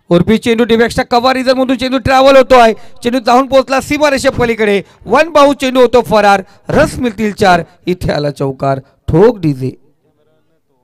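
A man commentates excitedly over a microphone.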